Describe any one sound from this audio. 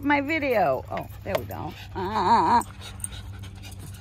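A small dog growls playfully up close.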